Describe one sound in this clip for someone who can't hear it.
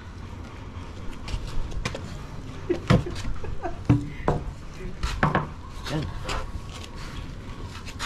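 Wooden planks knock and clatter against each other.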